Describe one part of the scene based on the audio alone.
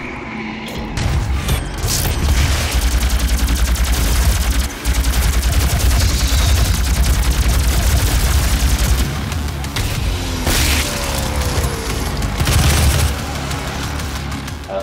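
A plasma rifle fires rapid buzzing shots.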